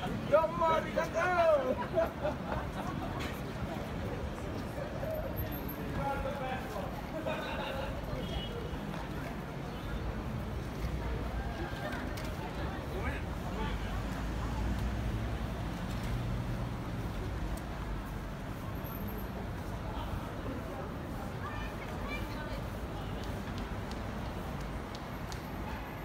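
Footsteps tap on pavement outdoors.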